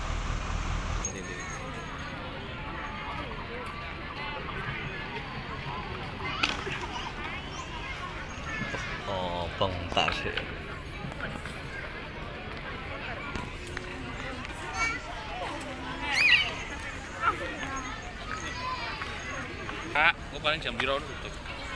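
Men and women talk and chatter around the listener.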